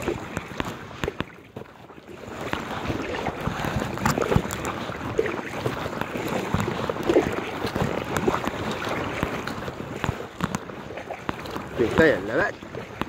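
Small waves lap and splash against the side of an inflatable boat.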